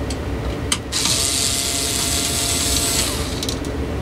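A cordless screwdriver whirs briefly as it drives a screw.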